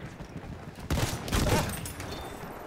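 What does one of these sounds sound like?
A rifle fires loud, sharp shots at close range.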